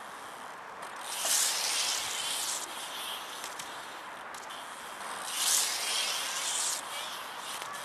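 Bicycle tyres scrape and grind along a concrete ledge outdoors.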